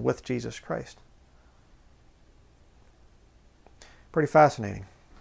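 A man speaks calmly and close to the microphone, with short pauses.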